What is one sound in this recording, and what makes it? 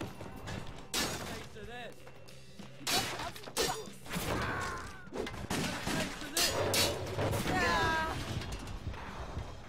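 Swords slash and clang in a fight.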